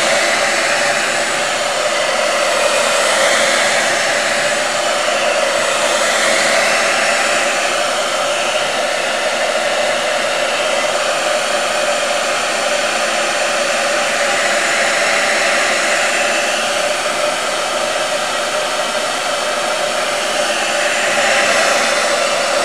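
A hair dryer blows with a steady, loud whooshing hum.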